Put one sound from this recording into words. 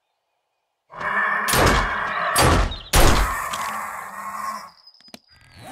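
A pistol fires several shots in quick succession.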